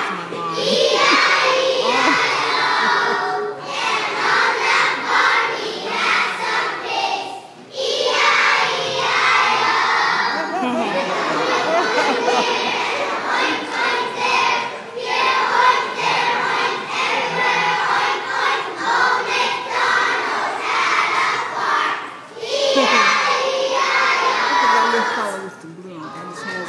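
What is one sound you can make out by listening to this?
A large group of young children sings loudly together in an echoing hall.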